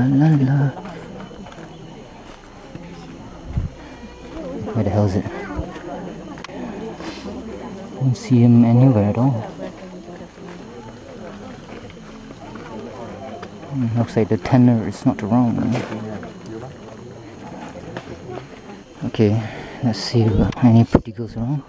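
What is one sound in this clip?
A crowd of men and women talk nearby outdoors.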